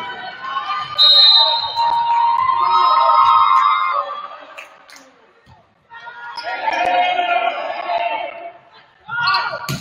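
Spectators cheer and shout in a large echoing gym.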